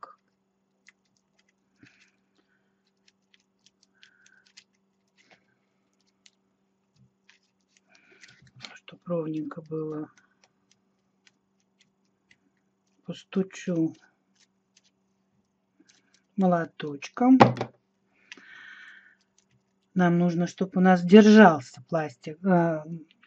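Foil crinkles softly as hands squeeze it into a ball.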